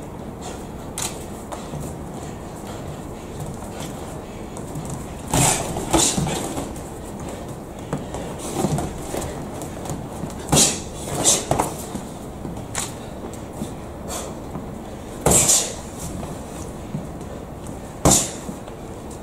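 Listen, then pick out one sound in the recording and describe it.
Boxing gloves thud sharply against pads and bodies in quick bursts.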